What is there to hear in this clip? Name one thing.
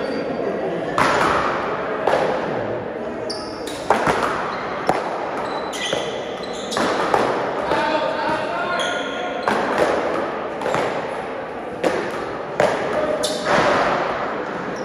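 Paddles smack a ball with sharp hollow pops that echo around a large hard-walled hall.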